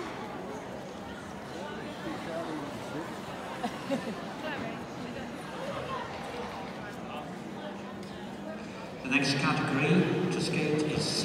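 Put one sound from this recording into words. A crowd of spectators chatters in a large echoing arena.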